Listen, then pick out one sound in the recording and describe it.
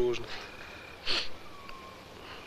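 A young man sighs sleepily.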